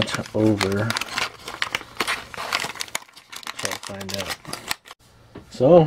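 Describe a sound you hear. A cardboard box rubs and taps in hands.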